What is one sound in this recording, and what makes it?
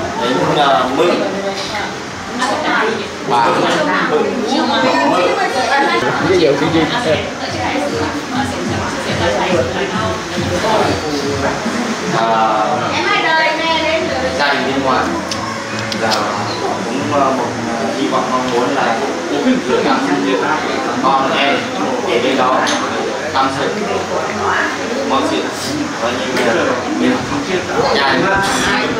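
A middle-aged man speaks with animation through a microphone and loudspeakers in an echoing room.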